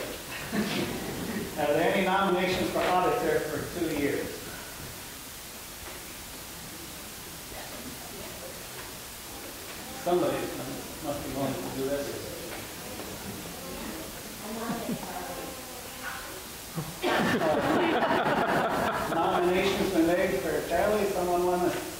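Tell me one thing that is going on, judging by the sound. A man speaks through a microphone in a large room, with a slight echo.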